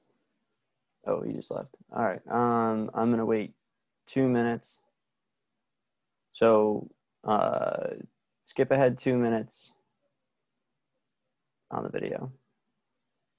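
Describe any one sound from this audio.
A young man talks calmly and closely into a microphone, pausing between phrases.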